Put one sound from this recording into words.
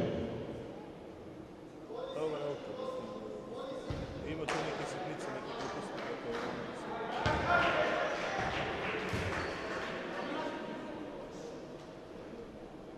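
A crowd murmurs and calls out in the stands.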